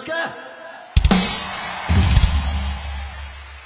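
Drums crash loudly.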